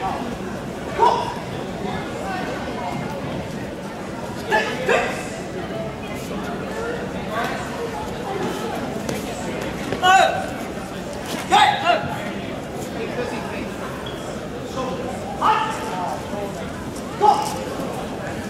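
Young fighters shout sharply as they spar, echoing in a large hall.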